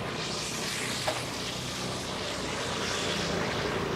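Motor scooters drive past on a wet road.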